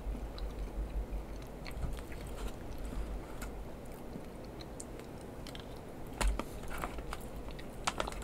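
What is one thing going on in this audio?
A spoon scrapes inside a foil pouch.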